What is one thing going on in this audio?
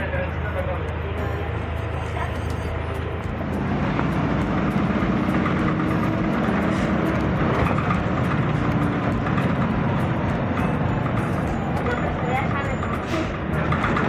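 A bus engine rumbles as the bus drives along.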